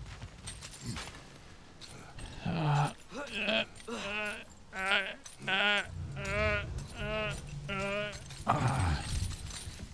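A metal chain rattles and clanks as it is climbed.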